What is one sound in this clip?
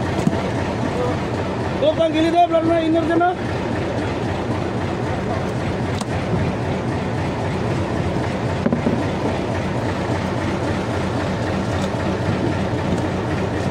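Fish thud and flop on a wooden boat deck.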